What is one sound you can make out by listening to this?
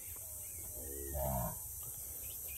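Cattle low nearby.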